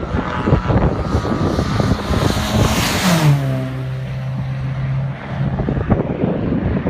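A racing car engine roars closer, speeds past and its pitch drops as it goes away.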